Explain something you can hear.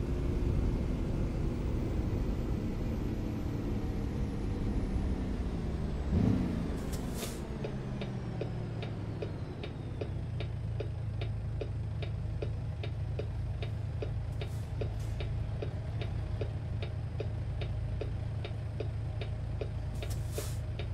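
A truck engine rumbles and winds down to a low idle.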